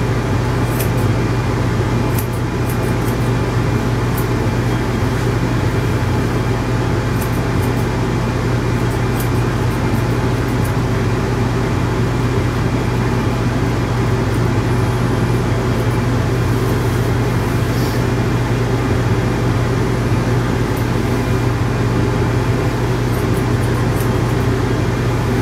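Scissors snip quickly at hair, close by.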